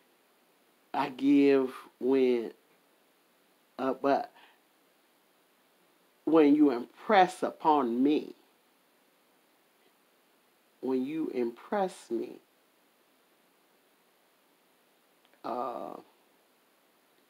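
A middle-aged woman speaks with animation close to the microphone, in short bursts with pauses.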